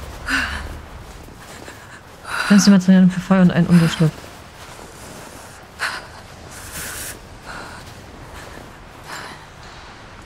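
Footsteps crunch in deep snow.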